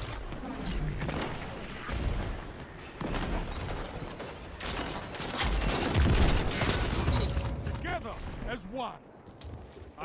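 Gunshots crack and boom in rapid bursts.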